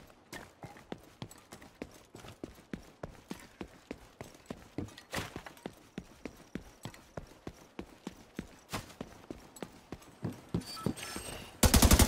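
Footsteps crunch over debris in a steady rhythm.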